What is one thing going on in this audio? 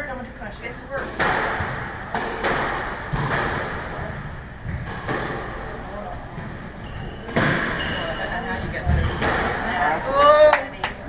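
A squash ball smacks hard against the walls in a fast rally.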